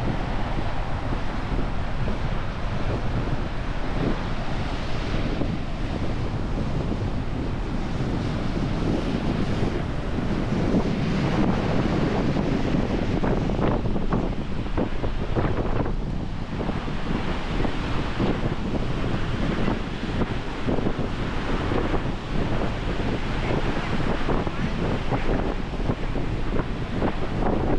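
Waves break and wash onto a shore nearby.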